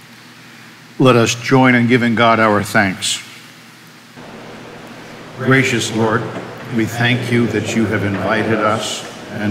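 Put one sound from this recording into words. A middle-aged man reads aloud calmly through a microphone.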